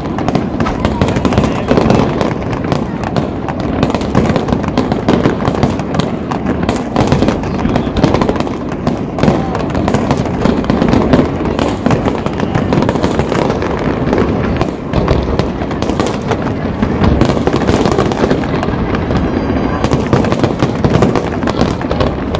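Fireworks bang and crackle in rapid bursts.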